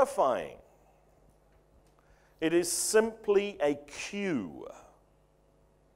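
A middle-aged man speaks through a microphone in a pausing, lecturing way, his voice ringing slightly in a large room.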